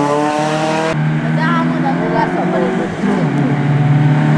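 A race car engine roars as the car approaches at speed.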